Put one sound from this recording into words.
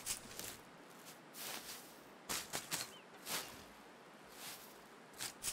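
Footsteps crunch through snow at a steady pace.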